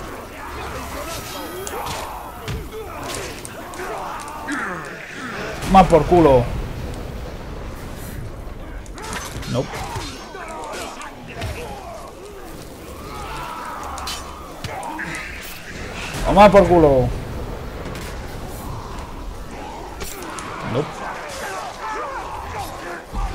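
Swords clash and strike in a fast, chaotic fight.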